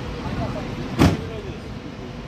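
An ambulance door slams shut.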